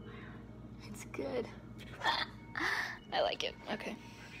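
A young girl speaks close by, with animation.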